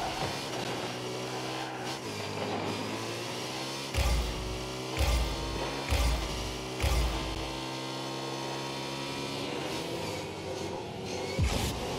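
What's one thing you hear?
A video game car engine hums steadily.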